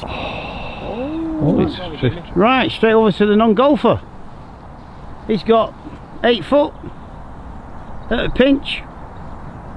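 A man talks with animation nearby, outdoors.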